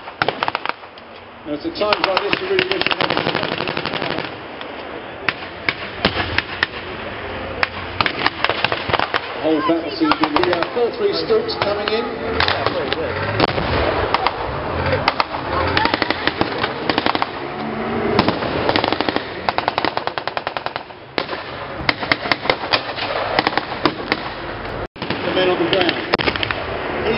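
Guns fire in rapid bursts outdoors.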